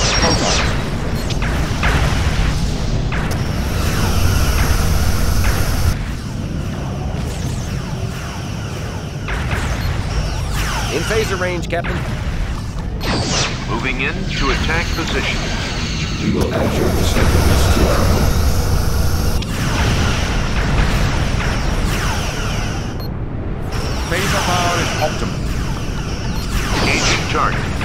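A starship engine rumbles low.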